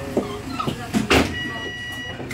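Bus doors thud shut.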